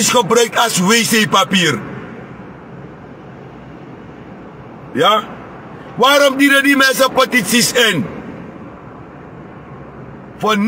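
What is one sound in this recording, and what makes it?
A man speaks loudly and emphatically, close to the microphone, in short bursts.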